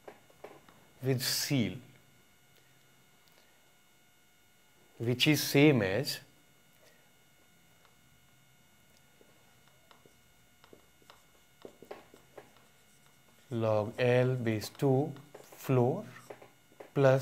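A man speaks calmly and clearly, close by, in short phrases with pauses.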